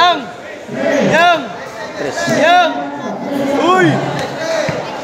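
Spectators whoop and cheer loudly in rising and falling calls.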